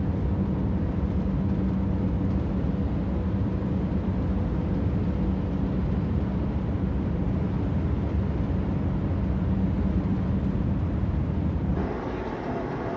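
Tyres roar on a road, heard from inside a car at highway speed.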